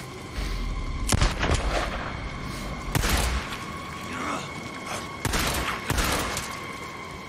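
Pistol shots ring out sharply, echoing outdoors.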